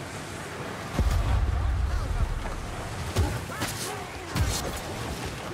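Blades swing and strike with sharp metallic slashes.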